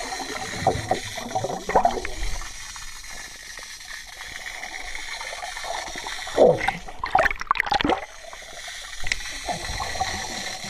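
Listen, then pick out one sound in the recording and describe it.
Water sloshes and gurgles, heard muffled from underwater.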